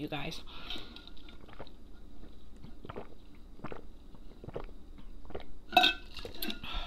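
A young woman sips a drink loudly through a straw.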